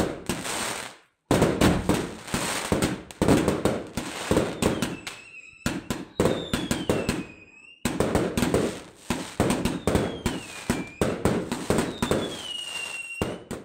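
Fireworks crackle and pop rapidly close by.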